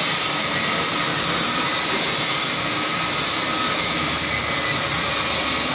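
A metal tool grinds against a spinning metal part with a harsh, steady hiss.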